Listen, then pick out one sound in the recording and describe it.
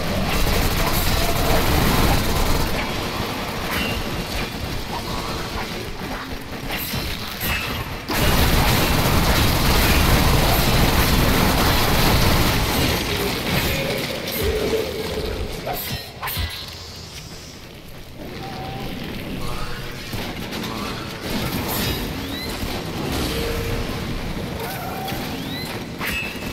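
Gunfire and energy blasts crackle and boom in a game battle.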